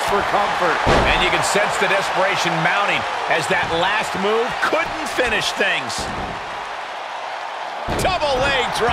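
Heavy thuds of bodies hitting a wrestling mat ring out.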